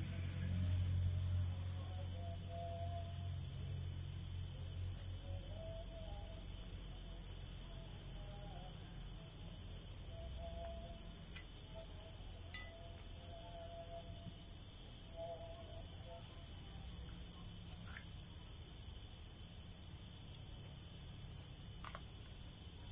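A ratchet wrench clicks against metal.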